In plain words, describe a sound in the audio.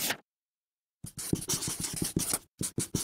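A marker squeaks and scratches across paper in quick strokes.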